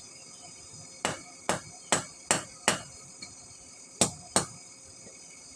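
A hammer strikes metal on an anvil with sharp ringing clangs.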